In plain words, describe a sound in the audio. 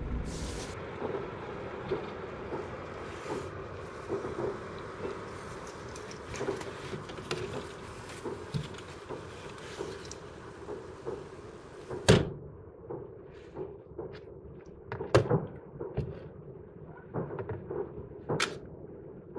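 Fireworks bang and crackle in the distance outdoors.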